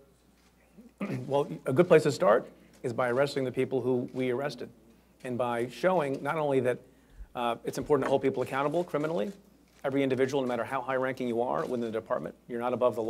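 A middle-aged man speaks calmly and firmly into a microphone.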